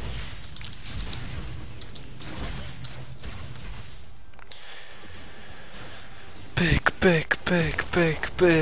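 Game spells crackle and whoosh in a fight.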